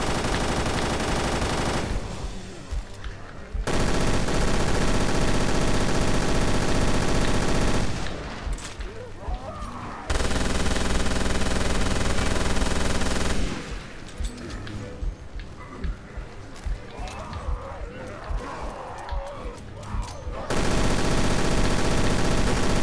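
Explosions boom and fire roars.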